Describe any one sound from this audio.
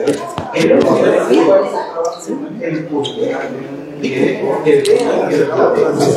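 A man speaks earnestly and close by, in a room with a slight echo.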